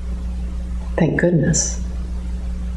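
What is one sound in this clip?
A middle-aged woman speaks briefly and calmly nearby.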